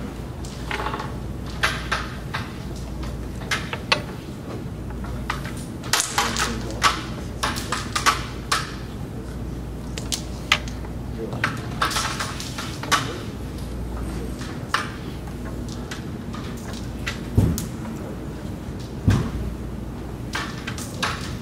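Wooden game pieces click sharply as a striker is flicked across a board.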